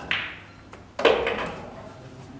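Pool balls clack together loudly.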